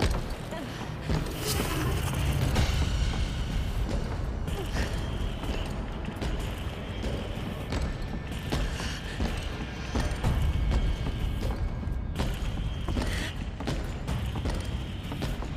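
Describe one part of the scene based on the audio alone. Footsteps walk across a hard floor and climb wooden stairs.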